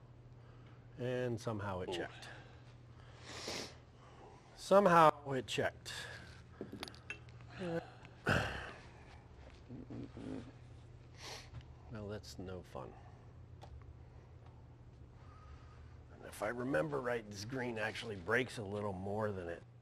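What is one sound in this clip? A man talks casually in a small room.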